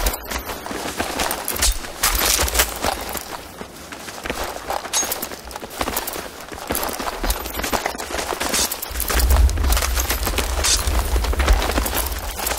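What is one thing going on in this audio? Footsteps crunch over rubble at a run.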